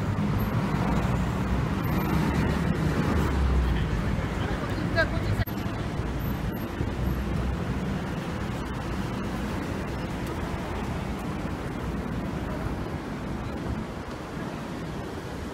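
Car engines rumble past on a busy city street.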